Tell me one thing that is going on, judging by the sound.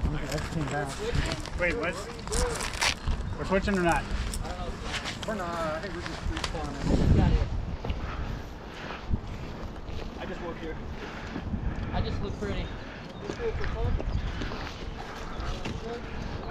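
Boots crunch on dry grass and gravel.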